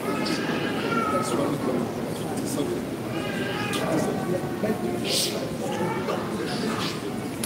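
A man prays loudly and with fervour in a large echoing hall.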